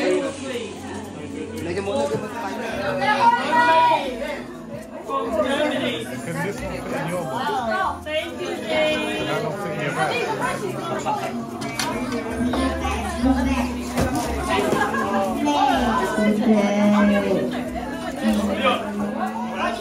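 A group of young men and women chat and laugh together nearby.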